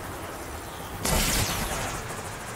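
A crackling energy blast whooshes and bursts loudly.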